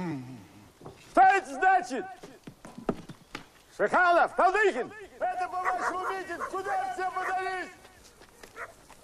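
Several men sing loudly together.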